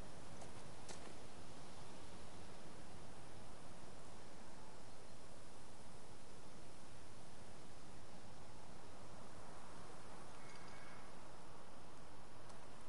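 A steady breeze rustles through leafy plants outdoors.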